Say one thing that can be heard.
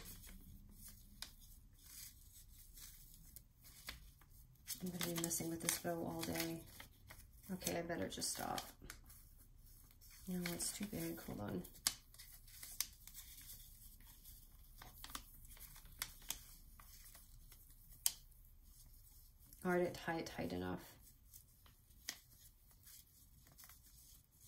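Paper and ribbon rustle softly as hands handle them.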